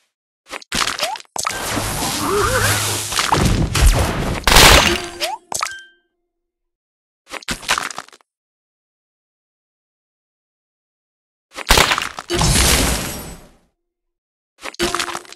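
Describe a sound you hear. Puzzle game sound effects pop and burst as candies clear.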